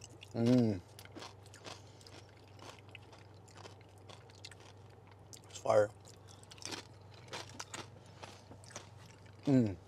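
Tortilla chips crunch and crackle, close to a microphone.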